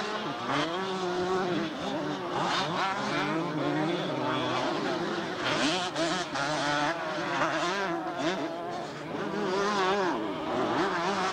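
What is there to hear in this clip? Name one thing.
Motorcycle engines rev and whine.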